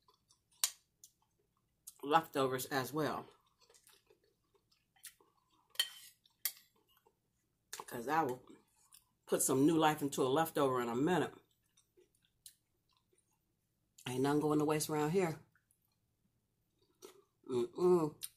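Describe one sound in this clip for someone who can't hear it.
A woman chews food with soft, wet mouth sounds.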